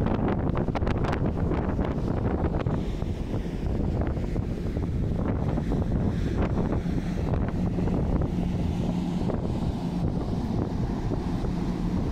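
Waves wash against the hull of a moving ship.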